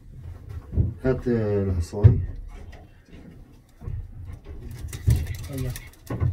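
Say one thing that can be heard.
A pigeon coos softly.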